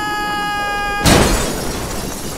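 A car slams down onto another car with a heavy thud.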